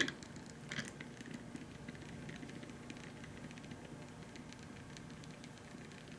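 A small stepper motor whirs and ticks steadily as it turns.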